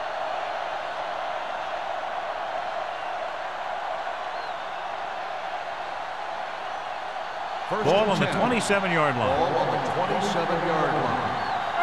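A stadium crowd roars steadily in the background.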